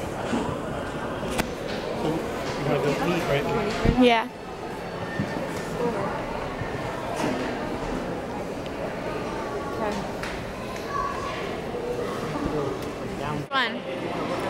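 Many voices murmur in a large echoing hall.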